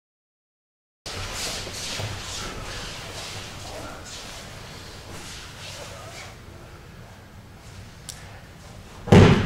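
Bare feet shuffle and slide softly across a mat.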